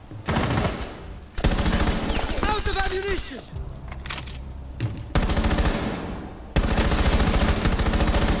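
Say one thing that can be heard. A rifle fires in rapid bursts of shots.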